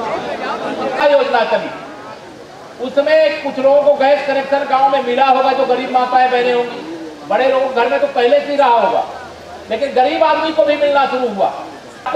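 A man speaks firmly into a microphone, heard over a loudspeaker.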